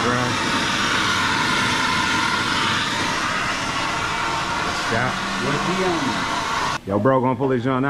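A torch flame roars with a steady loud hiss.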